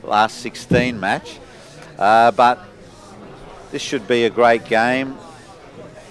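An elderly man speaks in short bursts.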